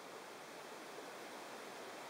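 Small scissors snip a thread.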